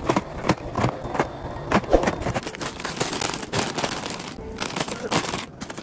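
Plastic snack bags crinkle and rustle close by.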